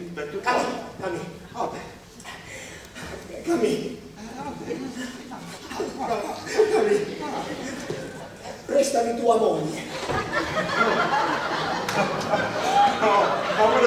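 An elderly man and a younger man talk with animation on a stage, heard from a distance.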